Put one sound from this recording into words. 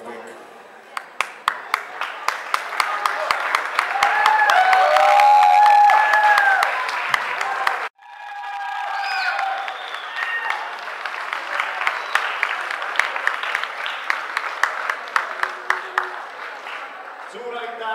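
Hands clap in a crowd.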